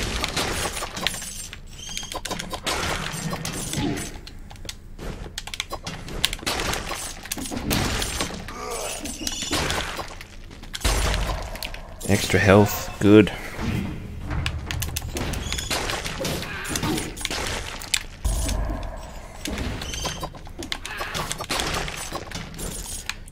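Sword slashes and hits land in quick bursts.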